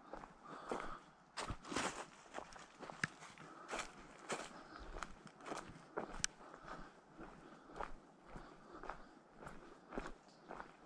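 Footsteps crunch through dry leaves at a steady walking pace.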